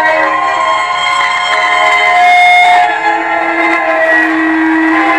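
A group of young women sing together through a loudspeaker outdoors.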